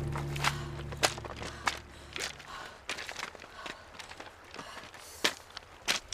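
A young woman breathes heavily.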